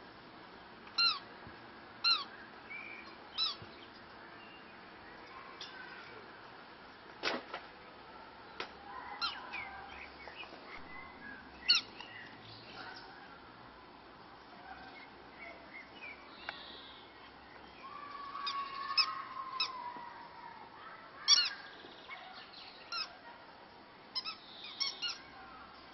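A rubber toy squeaks sharply.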